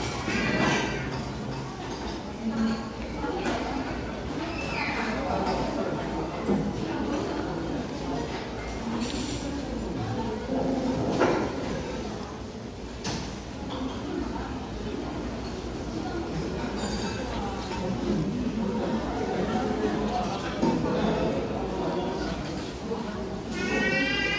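A metal spoon scrapes against a stone pot.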